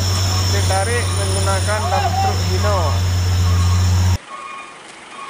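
A truck's heavy diesel engine rumbles steadily close by.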